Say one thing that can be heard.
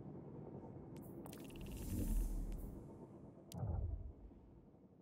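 Electronic menu sounds click and whoosh as a game menu opens.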